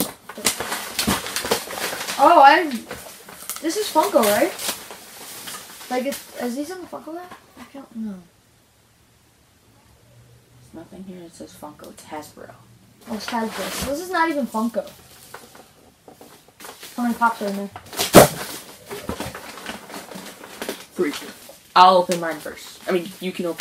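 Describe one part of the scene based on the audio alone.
Cardboard boxes rustle and thump as they are opened.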